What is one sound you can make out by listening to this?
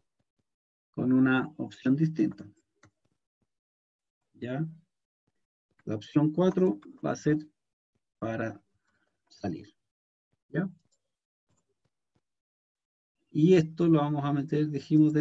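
A man speaks calmly into a microphone over an online call, pausing often.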